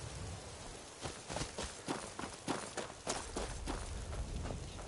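Footsteps rustle and crunch through dry grass and brush.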